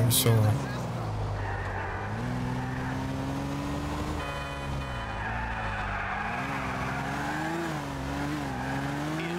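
A car engine hums and revs up and down as the car drives.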